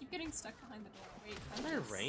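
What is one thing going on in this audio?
A crackling magic beam fires in a game.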